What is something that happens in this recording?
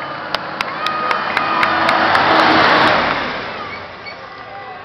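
A heavy truck engine roars loudly as the truck passes close by.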